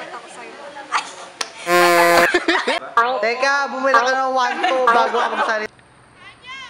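A young woman talks and laughs cheerfully nearby.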